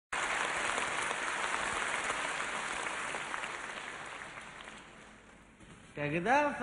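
A large audience applauds in a big hall, then fades.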